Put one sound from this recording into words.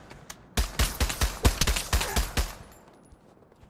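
Rapid gunfire bursts out loudly.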